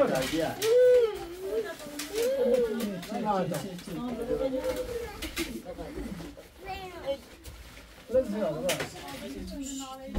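A heavy carpet rustles as it is shaken out and spread on a floor.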